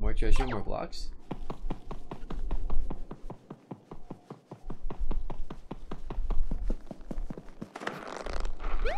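Quick light footsteps patter steadily.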